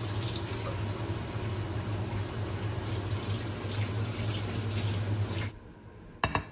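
Noodles bubble and simmer in pans.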